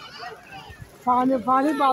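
Children shout and squeal nearby.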